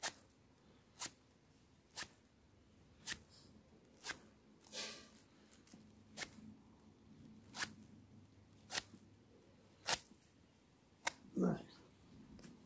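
Rough rope rustles as hands twist and pull it.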